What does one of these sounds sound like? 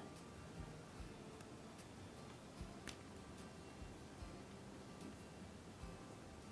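Hands rub softly over paper.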